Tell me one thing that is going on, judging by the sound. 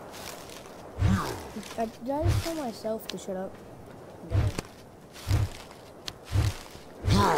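Leaves rustle and thump as plants are pulled by hand.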